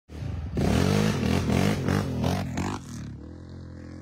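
A quad bike engine roars past nearby.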